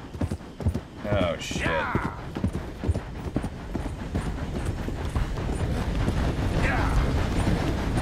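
A man speaks casually into a nearby microphone.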